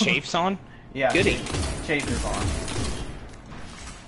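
A rifle fires with loud blasts.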